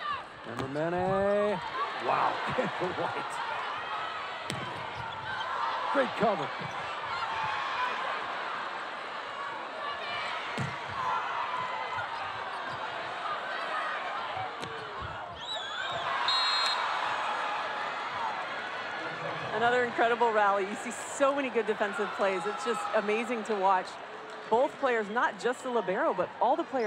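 A large crowd cheers and murmurs in an echoing arena.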